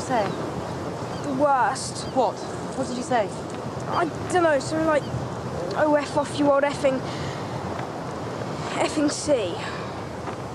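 A young boy speaks in a shaky, tearful voice nearby.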